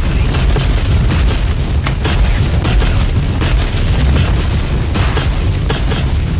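Gunfire and impacts crack rapidly.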